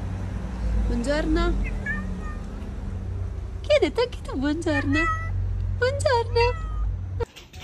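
A cat meows loudly close by, again and again.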